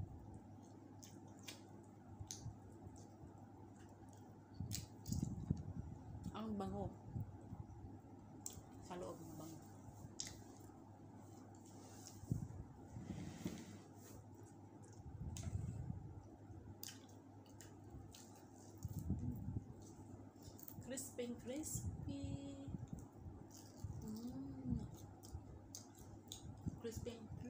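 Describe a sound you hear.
Crispy chicken skin crackles and tears under fingers.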